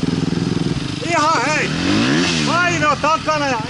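Distant dirt bikes rev with high, wailing whines.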